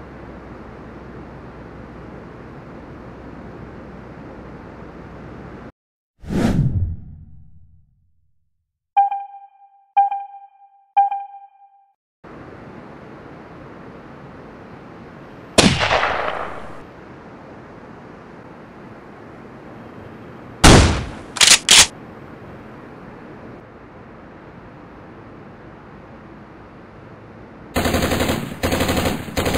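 Ocean waves break and rush onto the shore.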